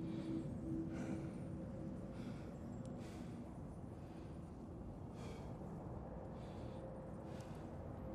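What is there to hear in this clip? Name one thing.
Wind blows steadily with a low rumble.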